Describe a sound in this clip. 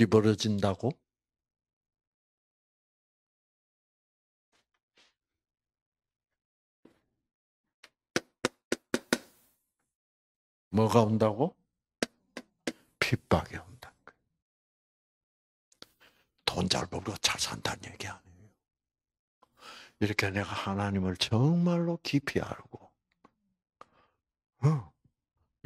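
An elderly man speaks through a microphone and loudspeaker, in short bursts with pauses.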